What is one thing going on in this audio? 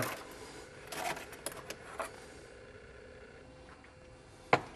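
A metal cup clinks against a metal stand.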